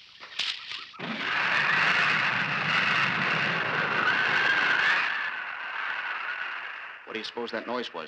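A flying saucer hums with a warbling electronic whir.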